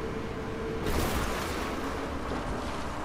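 Water splashes.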